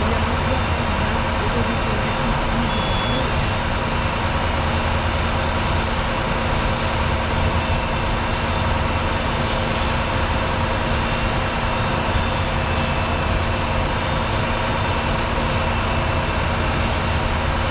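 A fire hose sprays water with a steady hiss.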